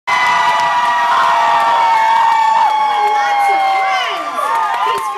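An audience cheers and whistles in a large hall.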